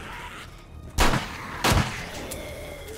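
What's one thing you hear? A pistol fires two loud shots.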